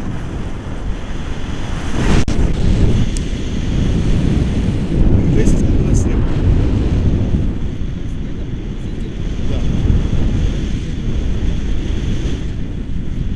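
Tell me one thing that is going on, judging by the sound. Strong wind rushes and buffets loudly throughout.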